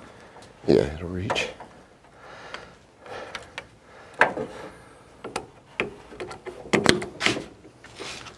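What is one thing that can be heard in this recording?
Metal tools clink and knock against a car battery.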